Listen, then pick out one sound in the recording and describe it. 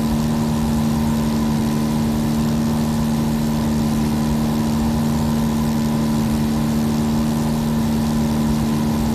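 A small propeller plane's engine drones steadily inside the cockpit.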